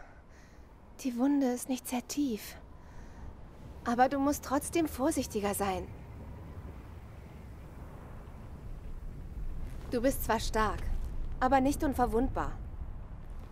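A young woman speaks softly and with concern, close by.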